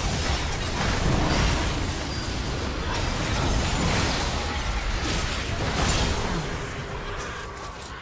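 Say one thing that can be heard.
Game characters clash with sharp hits and blasts.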